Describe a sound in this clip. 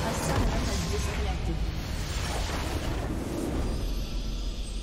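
Magical blasts and crackling effects burst loudly in a game battle.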